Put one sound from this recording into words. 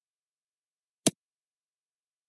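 A vase shatters on a hard floor.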